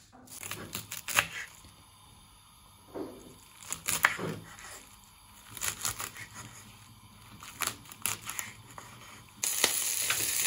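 A knife chops through crisp leafy stalks on a wooden board.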